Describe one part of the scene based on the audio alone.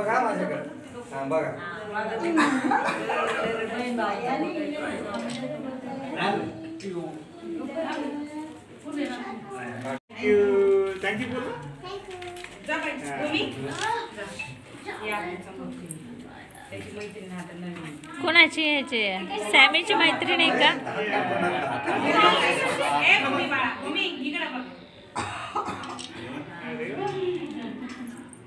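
Several people talk and call out at once in a small room.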